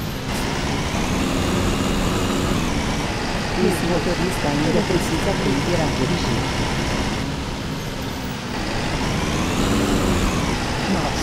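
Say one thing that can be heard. A diesel city bus engine hums, rising and falling in pitch as the bus accelerates and eases off.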